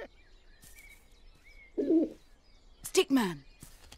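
A pigeon coos.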